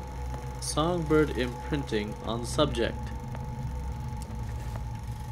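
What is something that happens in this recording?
A film projector whirs and clicks steadily.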